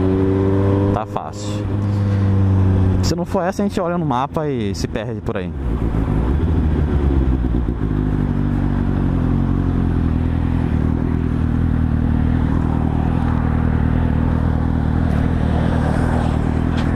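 A motorcycle engine hums steadily and revs up and down through gear changes.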